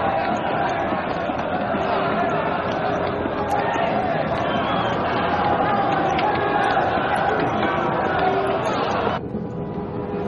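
A crowd of men shouts and clamours close by.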